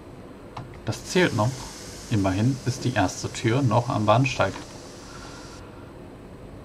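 The sliding doors of an electric multiple-unit train open.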